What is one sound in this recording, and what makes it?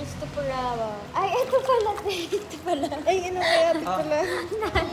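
Several young women chatter and laugh nearby.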